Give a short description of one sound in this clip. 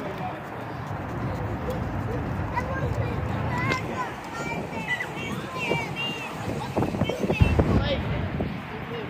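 Young children chatter and call out excitedly nearby.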